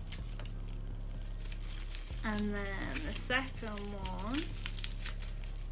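Plastic packaging crinkles in hands.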